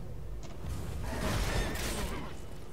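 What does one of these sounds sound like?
A sword swishes and clashes in a fight.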